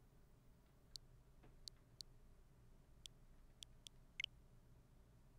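Short sharp menu clicks tick several times.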